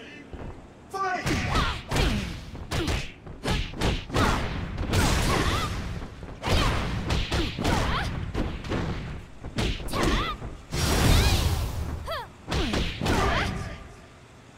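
A young woman shouts sharply with each strike.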